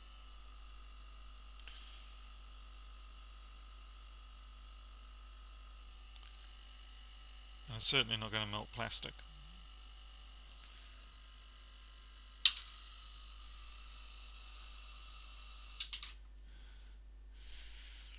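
Small metal parts click as hands work on a laptop.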